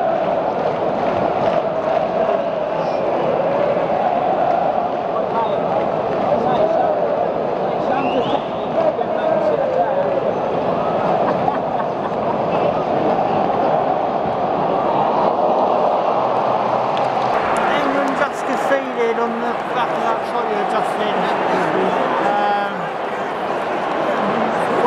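A large stadium crowd chants and roars loudly.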